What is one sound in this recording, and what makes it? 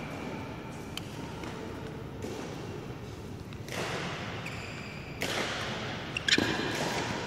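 A racket hits a shuttlecock with a sharp pop.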